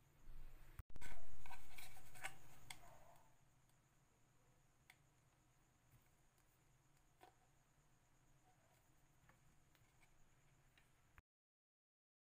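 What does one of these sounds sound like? A sheet of paper rustles as it is rolled and bent.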